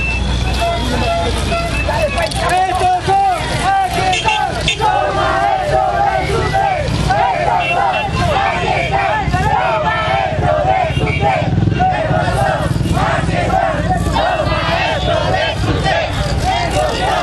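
A crowd of men and women chants and shouts loudly nearby.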